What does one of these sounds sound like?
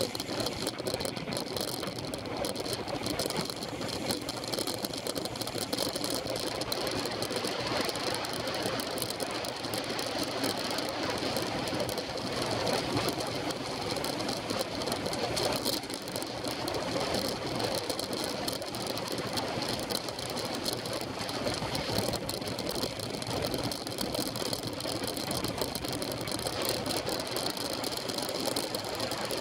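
Wind rushes loudly past while riding a bicycle outdoors.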